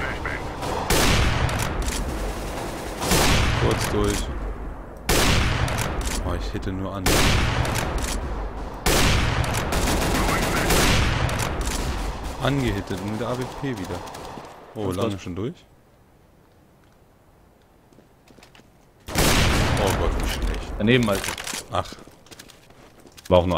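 A rifle fires loud single shots, one every few seconds.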